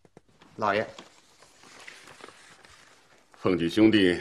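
Paper rustles as a man lowers a newspaper.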